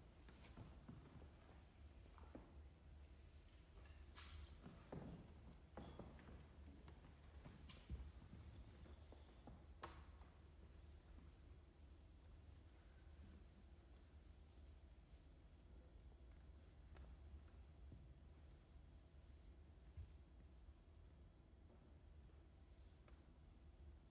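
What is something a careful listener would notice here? A small ensemble plays quiet, sparse music in a large echoing hall.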